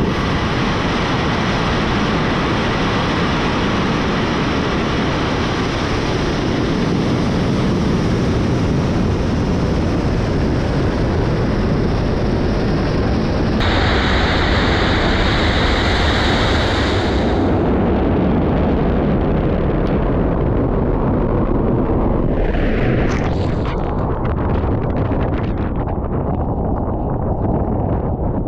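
A rocket engine roars loudly with a deep, rumbling blast.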